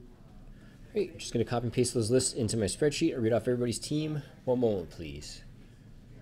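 A man talks.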